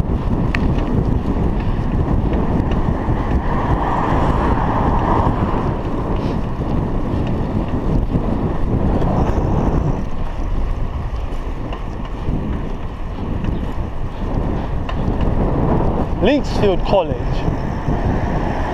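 Bicycle tyres hum on a paved road.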